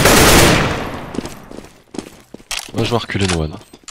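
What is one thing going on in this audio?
A rifle's magazine clicks as it is reloaded.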